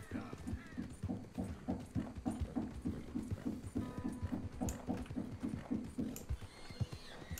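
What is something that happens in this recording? A horse's hooves clop at a steady trot on a dirt track.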